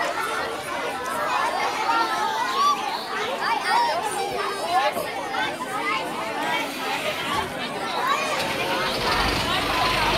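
Young children shout and squeal excitedly.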